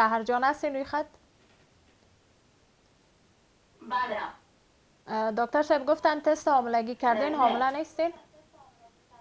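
A young woman speaks calmly and clearly into a microphone, with pauses.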